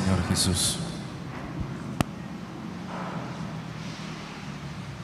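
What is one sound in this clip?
A man speaks calmly through a microphone, echoing in a large room.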